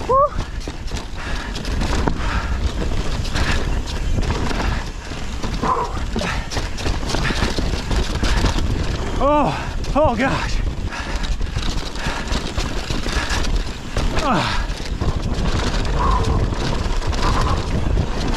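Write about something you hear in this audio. Bicycle tyres roll and crunch over a dirt trail.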